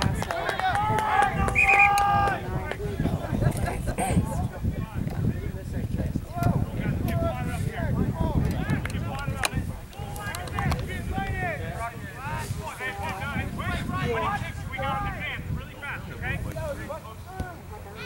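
Players shout and call out across an open field.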